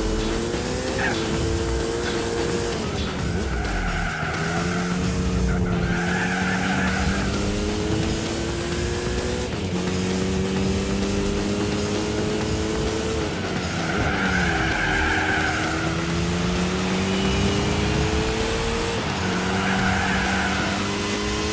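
A racing car engine revs high and drops in pitch at each gear change.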